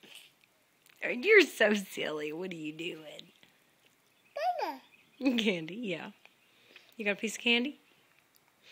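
A toddler babbles and whines up close.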